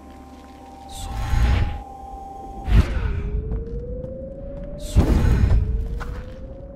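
A deep magical whoosh rushes past.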